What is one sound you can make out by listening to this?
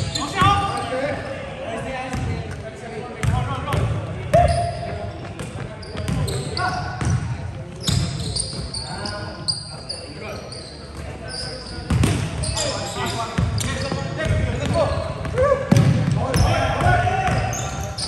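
Sneakers squeak on a hardwood court in an echoing gym.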